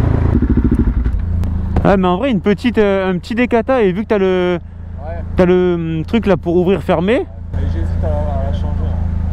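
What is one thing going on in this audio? A motorcycle engine idles.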